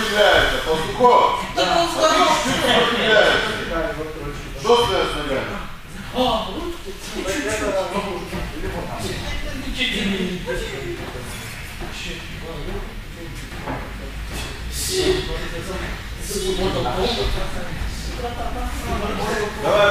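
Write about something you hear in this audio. Wrestlers grapple and scuffle on a padded mat.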